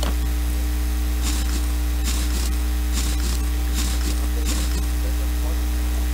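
A ratchet wrench clicks as bolts are loosened.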